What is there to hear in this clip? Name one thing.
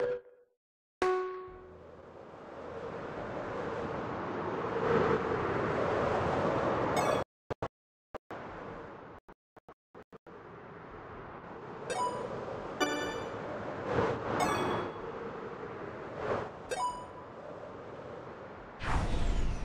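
Wind rushes steadily past while gliding through the air.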